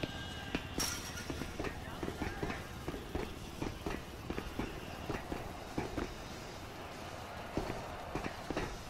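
Footsteps clang quickly up metal stairs.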